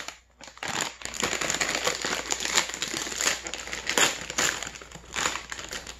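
A plastic snack bag rips open.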